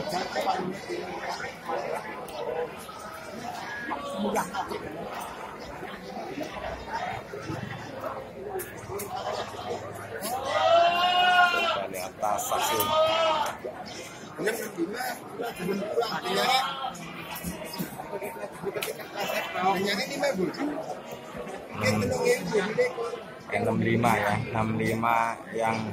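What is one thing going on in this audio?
Several men talk nearby in a lively crowd.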